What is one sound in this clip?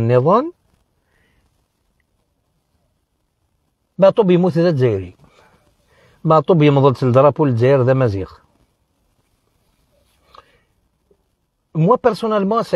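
A man speaks close by, in short emotional bursts with long pauses.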